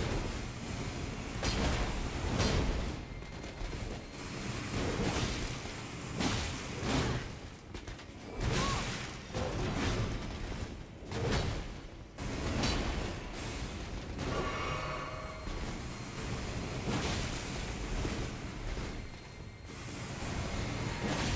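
Metal blades clash and strike in a fight, again and again.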